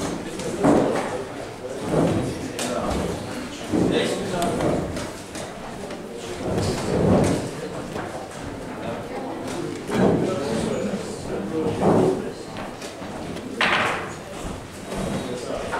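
A chess clock button clicks.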